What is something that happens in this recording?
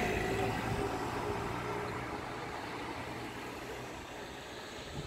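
A car drives past on the street nearby.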